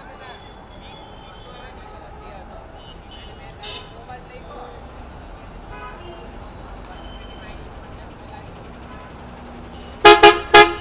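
A bus engine rumbles as the bus pulls in close.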